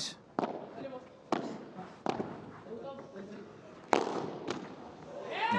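Padel rackets strike a ball with sharp pops.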